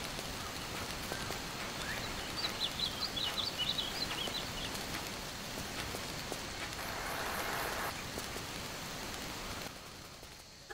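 A torch fire crackles and roars.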